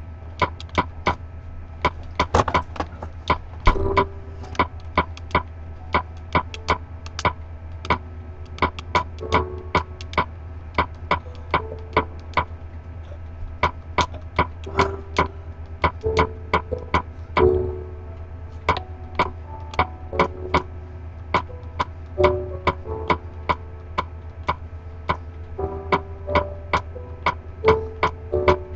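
A game menu ticks with quick, short clicks as a cursor moves between items.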